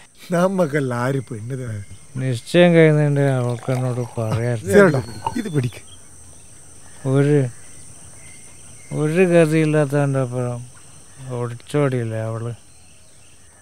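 A middle-aged man speaks nearby with emotion.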